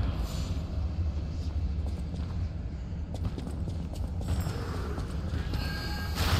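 Footsteps splash and slosh through shallow water in an echoing tunnel.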